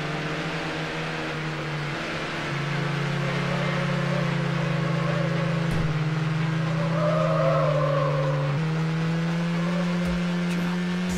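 A car engine hums steadily, shifting gears as it speeds along.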